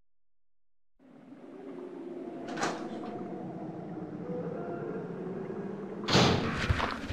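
A heavy door creaks slowly open.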